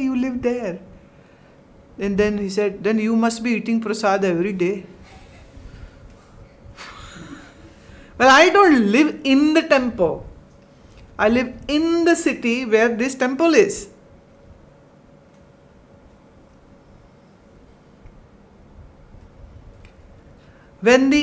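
A middle-aged woman speaks calmly and closely, with pauses.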